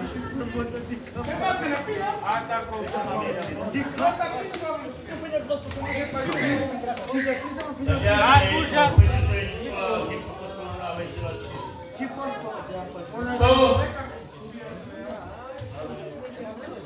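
A middle-aged man speaks into a microphone, heard through loudspeakers in a large echoing hall.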